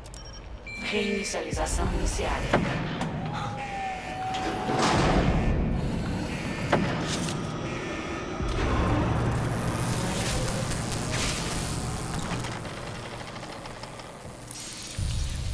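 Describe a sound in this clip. A machine whirs and clanks as it starts up.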